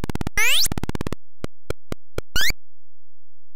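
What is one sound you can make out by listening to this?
Retro computer game sound effects beep and chirp.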